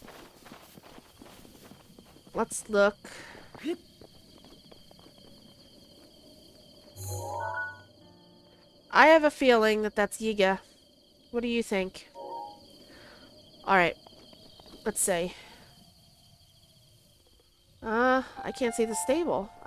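Footsteps patter over grass and dirt.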